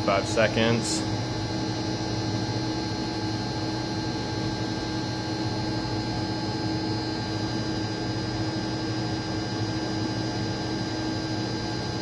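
A boiler hums and drones steadily close by.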